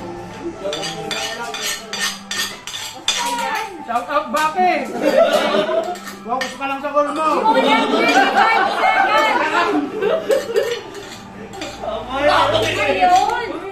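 A fork and spoon scrape and clink on a plate.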